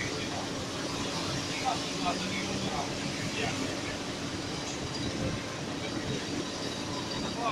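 Cars drive past on a wet road with tyres hissing.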